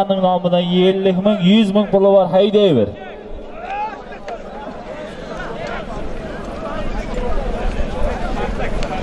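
A large outdoor crowd of men shouts and chatters.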